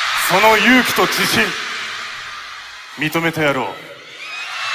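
A young man sings loudly through a microphone in a large echoing hall.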